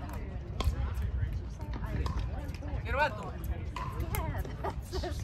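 Paddles pop sharply against a plastic ball outdoors.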